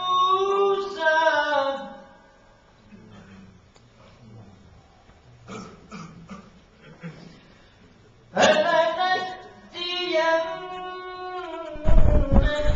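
A man chants in a long, melodic voice through a microphone.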